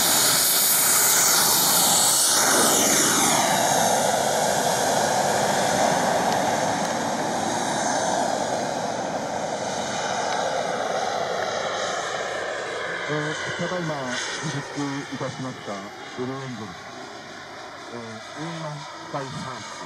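A model jet's turbine roars loudly as it takes off and climbs away, its whine slowly fading.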